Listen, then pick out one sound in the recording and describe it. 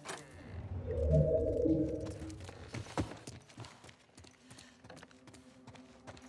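Footsteps tread softly across a wooden floor.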